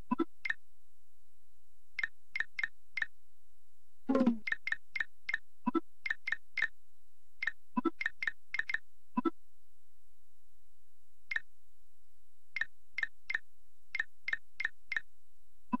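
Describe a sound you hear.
Short menu blips tick as a cursor moves between letters.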